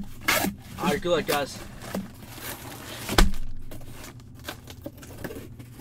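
Cardboard flaps scrape and thump as a box is opened.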